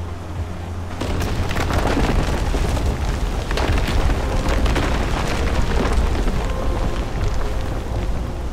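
Footsteps climb stone steps.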